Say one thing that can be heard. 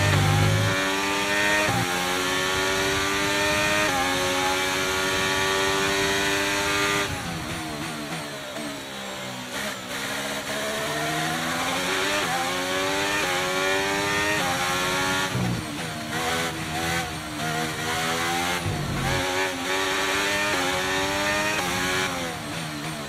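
A racing car engine screams at high revs, climbing through the gears and dropping as it brakes for corners.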